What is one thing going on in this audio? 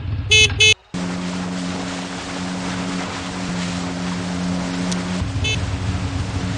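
Water rushes and splashes under a surfboard.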